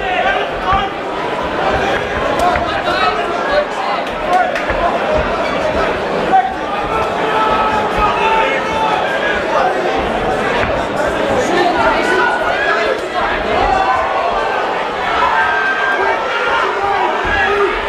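Punches and kicks thud against bodies.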